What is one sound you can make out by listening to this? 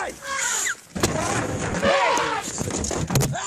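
An African elephant slams against a vehicle with a heavy thud.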